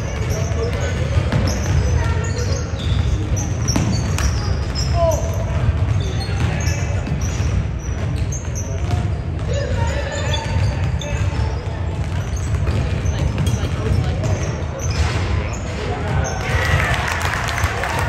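Young players call out to each other in a large echoing gym.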